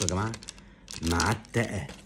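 A foil card pack crinkles in a man's hands.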